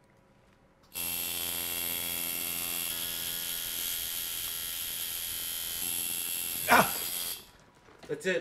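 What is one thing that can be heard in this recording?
A tattoo machine buzzes as it works on skin.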